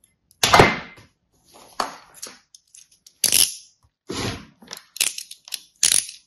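Soft sand crunches and crumbles between fingers in short bursts.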